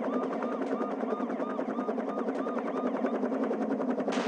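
A police siren wails rapidly up and down.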